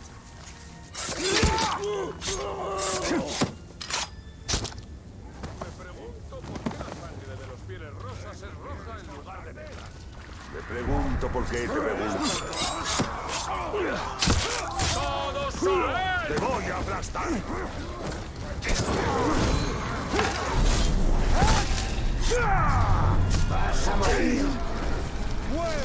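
Blades slash and strike in quick, sharp hits.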